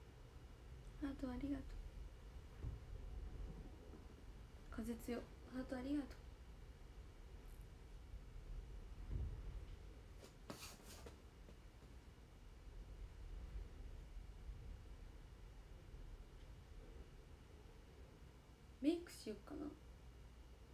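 A young woman speaks softly in short bursts, close by.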